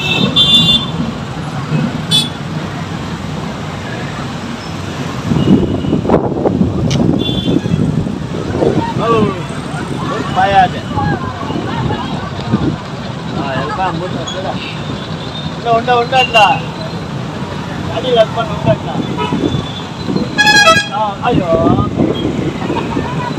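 A crowd of young women chants and calls out while marching outdoors.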